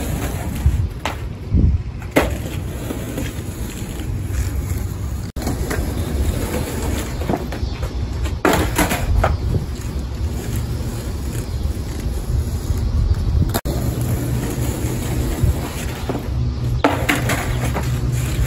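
A skateboard clacks sharply against the pavement.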